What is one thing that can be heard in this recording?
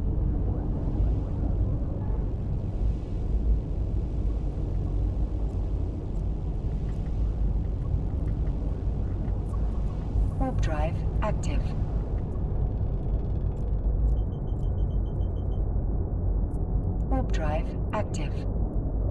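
A deep, steady rumble drones throughout.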